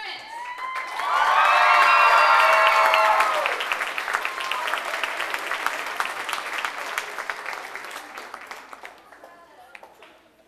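People applaud in a large hall.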